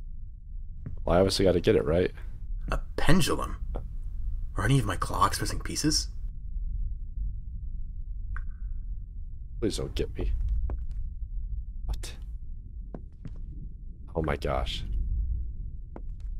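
A young man talks into a microphone, close up, with animation.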